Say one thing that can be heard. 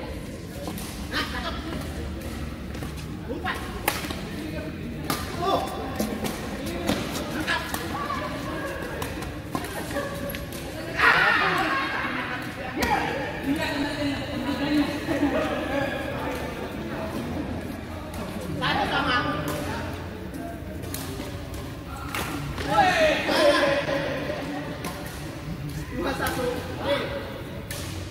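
Badminton rackets hit a shuttlecock in a large echoing hall.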